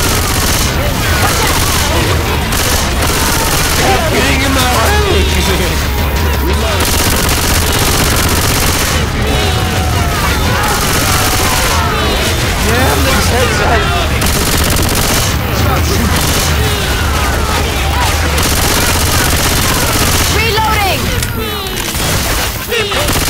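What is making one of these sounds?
Automatic gunfire rattles rapidly.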